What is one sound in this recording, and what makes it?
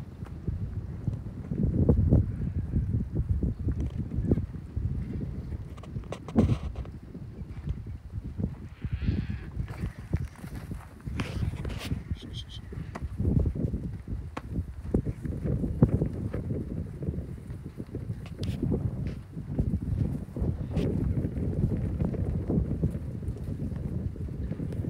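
Cattle hooves shuffle and thud on dry dirt.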